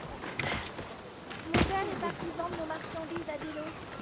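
A heavy thud sounds as a person lands from a jump.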